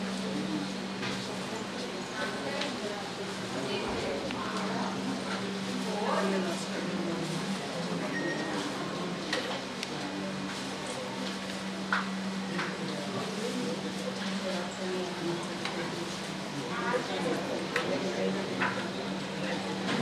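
A crowd of men and women murmur quietly nearby.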